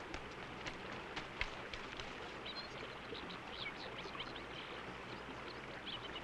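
Footsteps crunch on river pebbles.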